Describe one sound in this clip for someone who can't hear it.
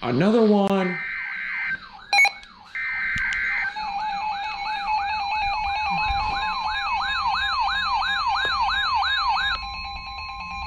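Several alarm tones warble up and down together.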